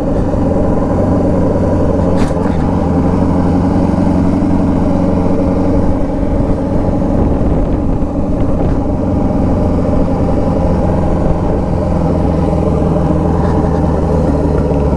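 A motorcycle engine hums steadily up close as the bike rides along.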